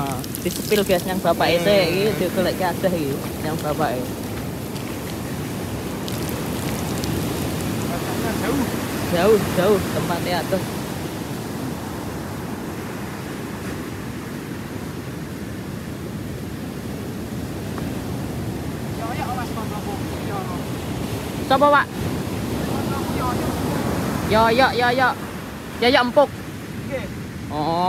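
Waves wash onto the shore in a steady rush.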